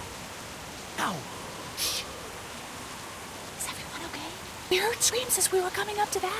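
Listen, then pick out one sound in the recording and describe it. A young woman speaks quietly and tensely.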